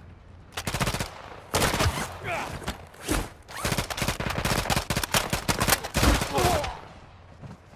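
Gunshots fire in rapid, loud bursts.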